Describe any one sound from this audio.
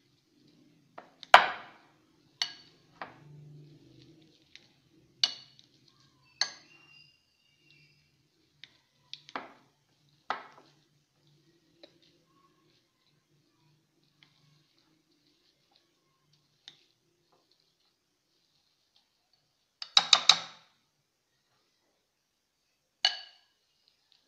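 A metal masher clinks against a glass bowl.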